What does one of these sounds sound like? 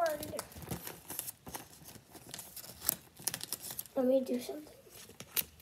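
A young girl speaks briefly, close by.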